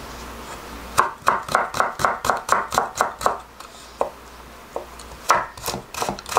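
A knife chops quickly on a wooden cutting board.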